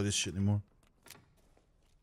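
A pistol clicks as it is handled.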